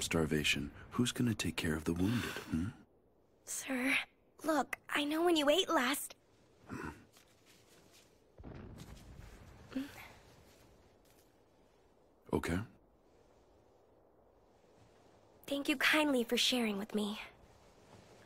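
A young woman speaks softly and gently.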